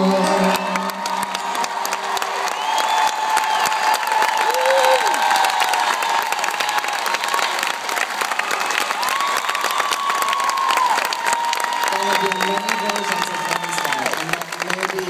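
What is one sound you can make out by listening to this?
A band plays live music loudly through big loudspeakers in a large open venue.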